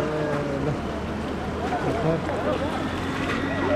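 Water splashes as a woman throws it from a container.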